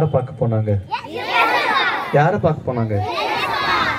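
A crowd of children laughs and cheers.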